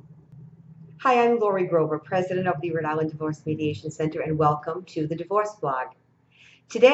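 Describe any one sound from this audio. A woman speaks warmly and clearly into a close microphone.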